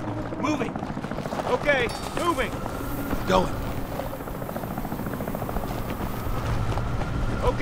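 Boots run across hard ground.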